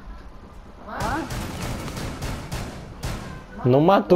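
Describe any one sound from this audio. Gunshots fire in a quick burst.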